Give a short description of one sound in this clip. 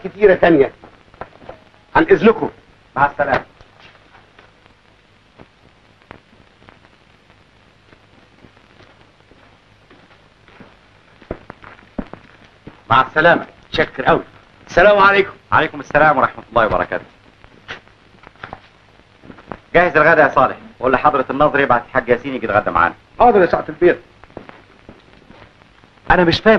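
Men talk with animation.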